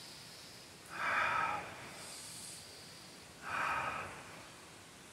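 A man breathes out forcefully.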